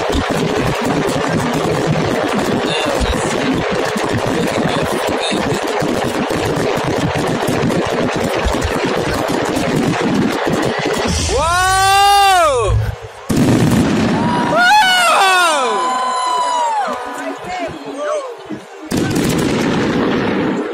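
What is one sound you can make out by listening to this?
Fireworks burst with deep booms.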